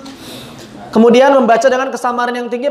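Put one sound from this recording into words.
A man recites loudly in a chanting voice through a microphone.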